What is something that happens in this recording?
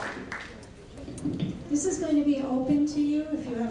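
An elderly woman speaks with animation to an audience.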